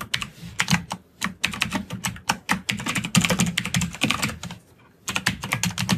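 Keyboard keys click as a man types.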